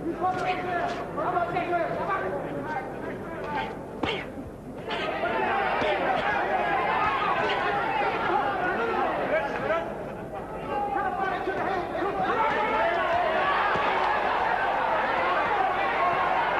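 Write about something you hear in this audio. A crowd in a large arena cheers and shouts.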